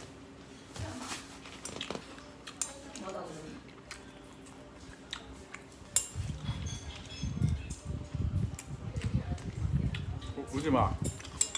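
Chopsticks clink on a plate.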